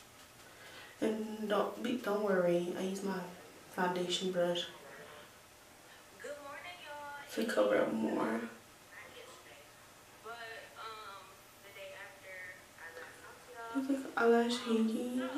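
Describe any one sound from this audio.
A young woman talks casually, close to the microphone.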